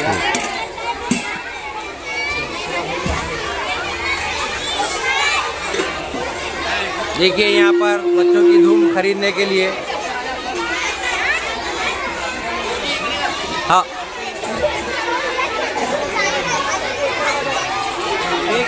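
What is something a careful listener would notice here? A large outdoor crowd of men, women and children chatters loudly all around.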